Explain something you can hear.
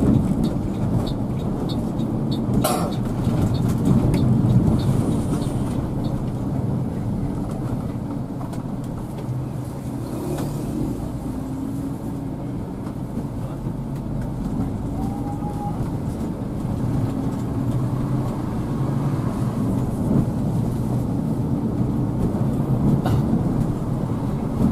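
A vehicle engine hums and rumbles steadily from inside the cab.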